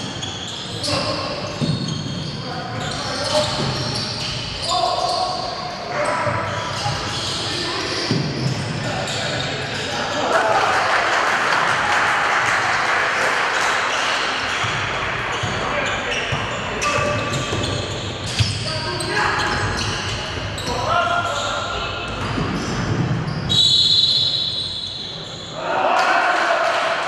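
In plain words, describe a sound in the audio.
Sneakers squeak on a wooden court in a large echoing hall.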